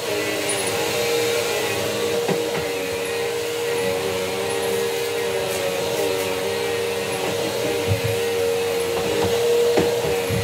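A vacuum cleaner motor hums steadily nearby.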